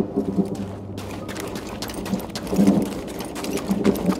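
Footsteps run quickly over rough, gravelly ground.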